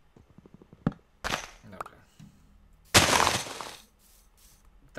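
Leaves crunch as a block breaks.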